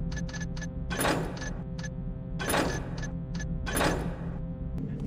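Menu selections click with short chimes.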